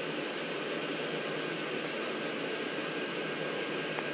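Electric fans hum steadily inside inflatable decorations.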